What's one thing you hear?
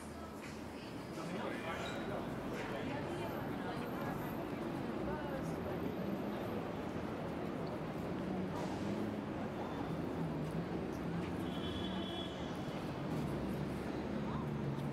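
A busy city street hums with crowd chatter and traffic outdoors.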